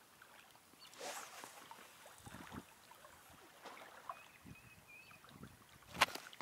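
A fishing reel clicks as a line is reeled in.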